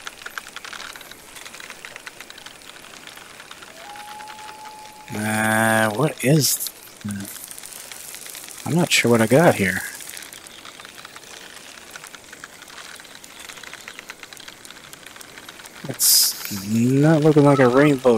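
A fishing reel clicks steadily as line is wound in.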